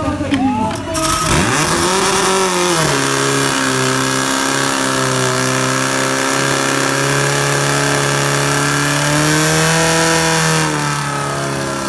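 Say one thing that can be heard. A pump engine starts up and roars steadily.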